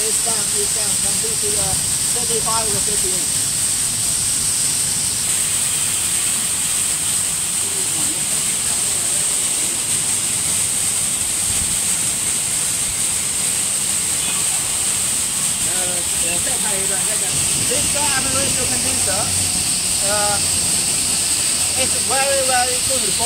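A cooling machine hums steadily outdoors.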